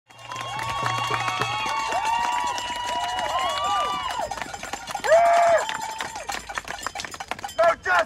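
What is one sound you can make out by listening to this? A crowd chants loudly together outdoors.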